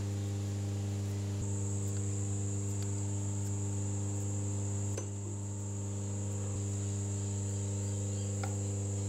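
A machine motor hums steadily nearby.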